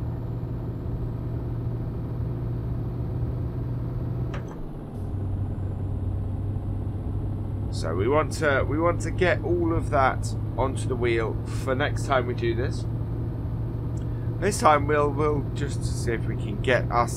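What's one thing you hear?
A truck engine hums steadily while driving.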